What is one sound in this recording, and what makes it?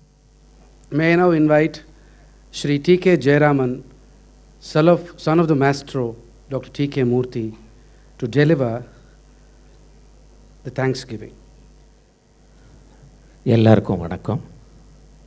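A man speaks into a microphone, in short phrases with pauses.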